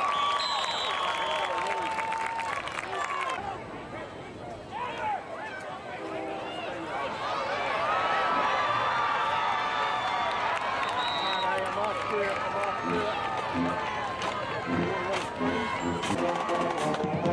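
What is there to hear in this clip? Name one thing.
A crowd in the stands cheers and shouts.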